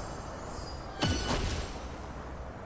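A bright magical chime rings out with a rushing whoosh.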